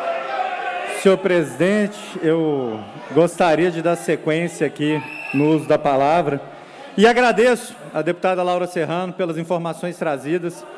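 A man speaks firmly through a microphone and loudspeakers in a large hall.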